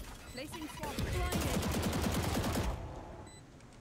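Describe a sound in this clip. Rapid gunshots fire in a video game.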